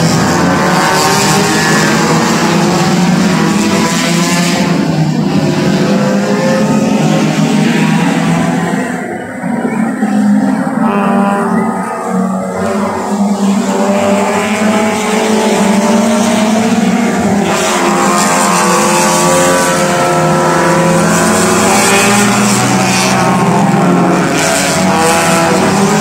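Racing car engines roar and whine as cars speed past in the distance.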